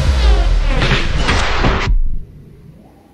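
Loud electronic dance music plays, then cuts off abruptly.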